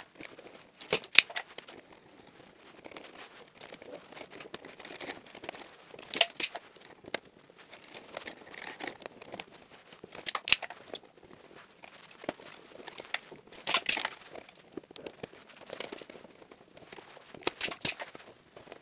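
Plastic clicks and snaps sharply now and then.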